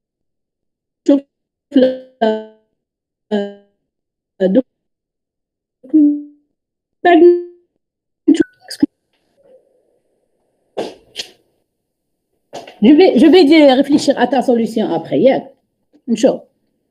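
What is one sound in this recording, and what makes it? A woman speaks in short, halting phrases over an online call.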